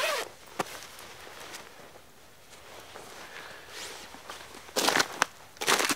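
A jacket rustles as it is taken off.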